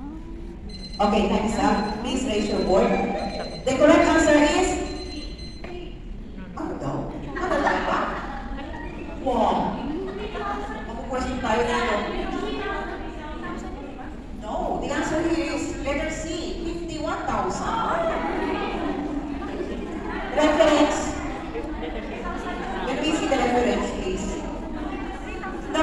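A woman speaks loudly through a microphone in a large echoing hall.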